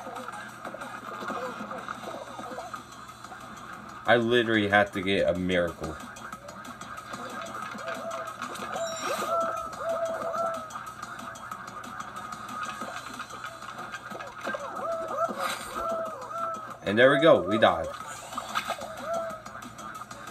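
Video game music plays from a television speaker.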